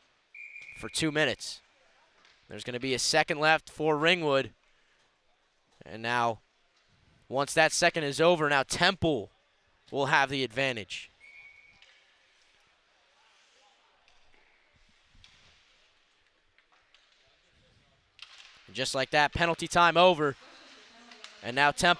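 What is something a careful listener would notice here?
Skates scrape and glide across ice in a large echoing rink.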